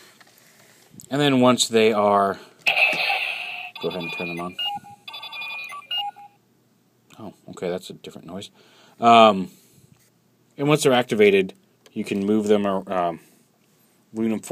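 A recorded male voice calls out loudly through a toy's small speaker.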